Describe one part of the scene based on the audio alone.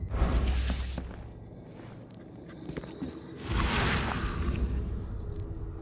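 A deep rumble swells and fades.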